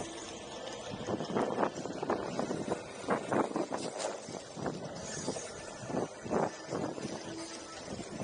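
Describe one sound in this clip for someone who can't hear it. A skateboard thuds and clatters over bumps and cracks in the pavement.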